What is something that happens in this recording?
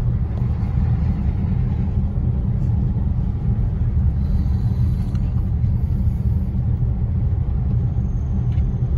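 Wind rumbles steadily against a moving car.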